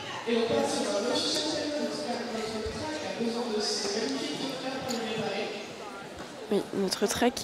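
Several women chatter together in a large echoing hall.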